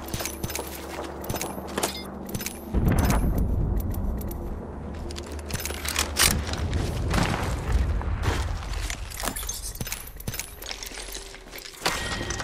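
Short clicks sound as items are picked up.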